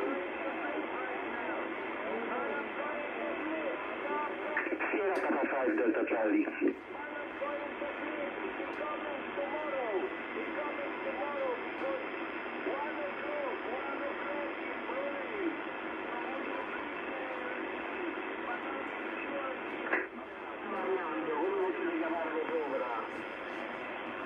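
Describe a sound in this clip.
Warbling, wavering tones chirp from a radio receiver's speaker.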